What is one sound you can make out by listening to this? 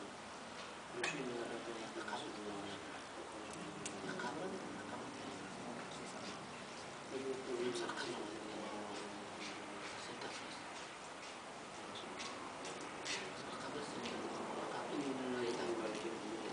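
Young men talk quietly nearby.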